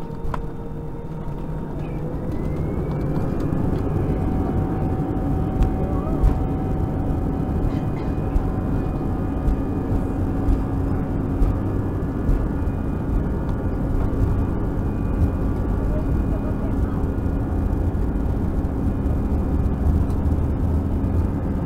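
Tyres rumble and thump over the taxiway.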